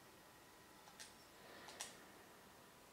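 Short menu chimes sound from a television speaker.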